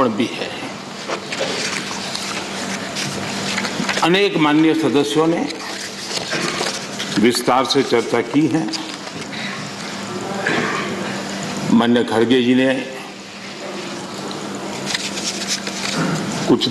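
An elderly man speaks firmly into a microphone in a large hall.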